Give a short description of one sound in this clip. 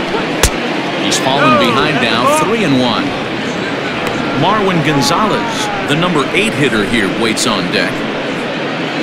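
Fans whistle loudly from the stands.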